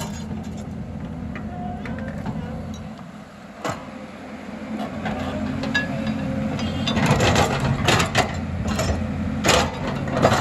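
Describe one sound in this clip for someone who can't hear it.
An excavator engine rumbles steadily.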